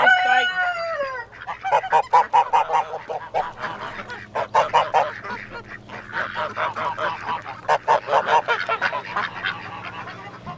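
Ducks quack loudly and repeatedly close by.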